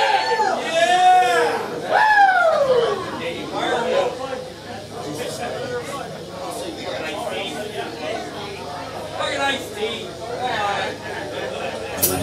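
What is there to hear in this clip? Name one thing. Electric guitars play loud, bending notes through amplifiers.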